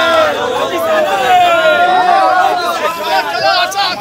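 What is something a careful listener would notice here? A young man shouts close by.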